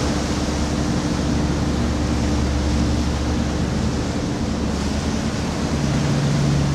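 A ferry's engines drone steadily while the ferry is under way.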